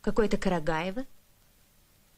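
A woman asks a question calmly.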